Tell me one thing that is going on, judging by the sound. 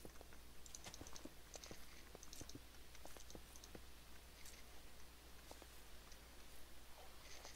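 Footsteps crunch on grass and stone at a steady walking pace.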